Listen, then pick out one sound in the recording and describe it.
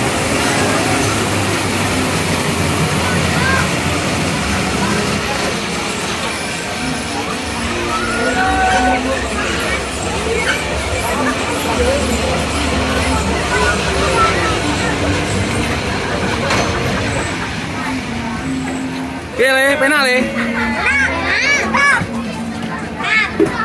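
Children chatter and shout excitedly nearby.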